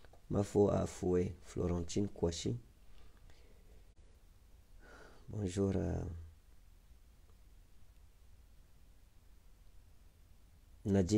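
A man speaks close to a microphone in short, animated bursts with pauses.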